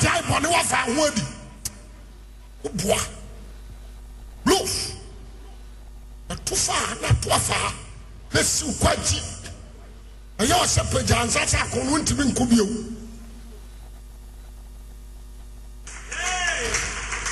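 A man preaches forcefully into a microphone, in bursts with pauses, in a large echoing hall.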